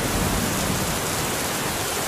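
A building crashes down into rushing water.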